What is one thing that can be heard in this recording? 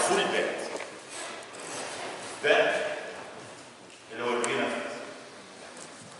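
A middle-aged man speaks in a lecturing way, in a room with some echo.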